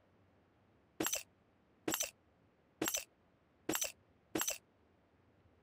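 Short item pickup clicks sound in quick succession.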